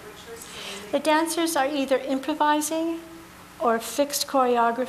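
A middle-aged woman speaks with animation into a nearby microphone.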